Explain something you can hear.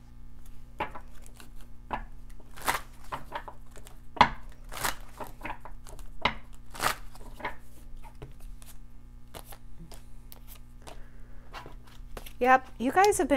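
Playing cards riffle and tap against each other.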